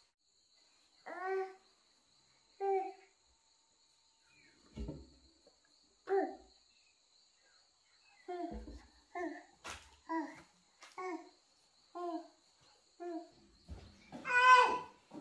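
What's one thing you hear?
A toddler babbles and coos close by.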